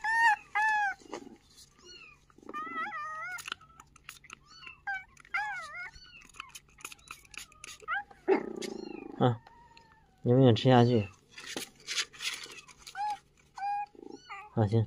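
Puppies whimper in high, thin whines.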